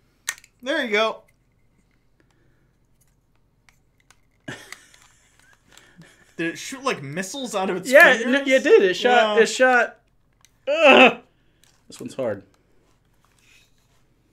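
A plastic toy clicks in a man's hands.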